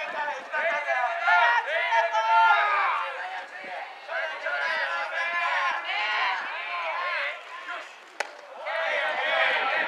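A large crowd cheers and chants in an open-air stadium.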